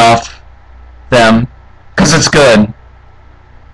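Short, loud attack sounds burst out in a video game.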